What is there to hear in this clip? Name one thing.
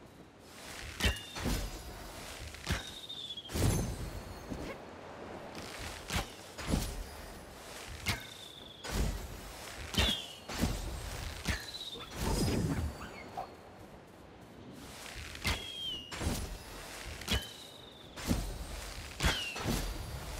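A hawk cries out with sharp, falling screeches.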